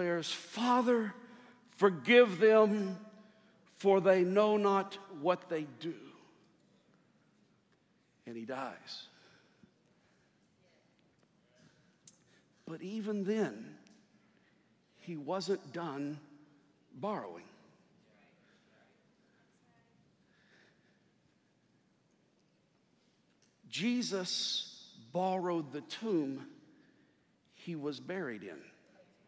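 A man preaches with passion through a microphone in a large echoing hall, pausing between phrases.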